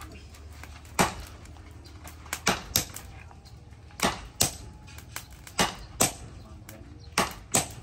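Sledgehammers strike hot metal on an anvil in ringing, clanging blows.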